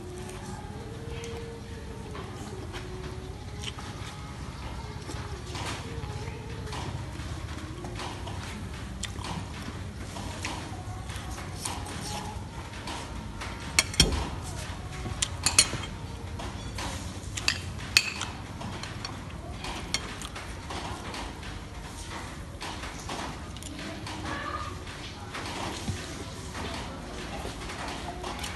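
A young woman chews and smacks her lips close to the microphone.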